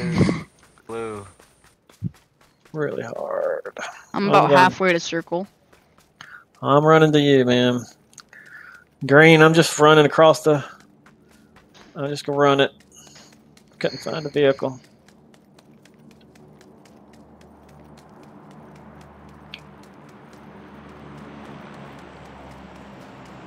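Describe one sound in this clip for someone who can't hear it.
Footsteps scuff on dry, rocky ground.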